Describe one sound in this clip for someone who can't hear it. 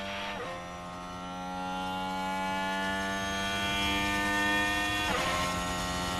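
A racing car engine shifts up a gear with a brief drop in pitch.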